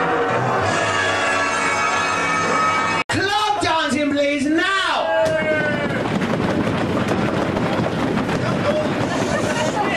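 A singer sings with vibrato into a handheld microphone, heard through a loudspeaker.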